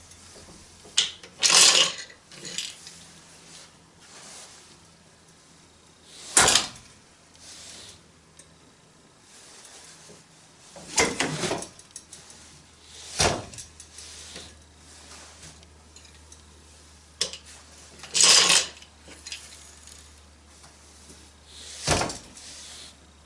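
A wooden loom beater knocks sharply against the cloth.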